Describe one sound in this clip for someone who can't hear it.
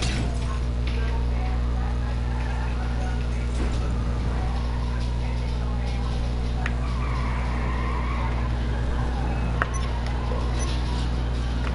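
A car engine roars as a car drives.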